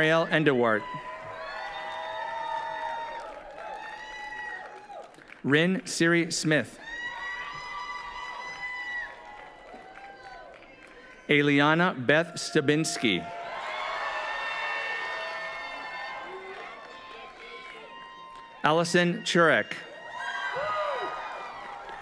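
A crowd cheers, whoops and whistles.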